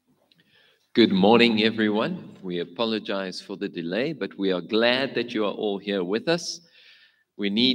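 A man speaks calmly into a microphone over a loudspeaker in a large echoing hall.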